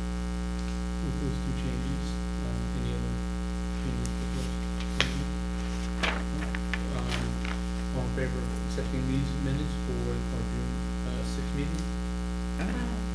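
A man speaks calmly into a microphone in a room with some echo.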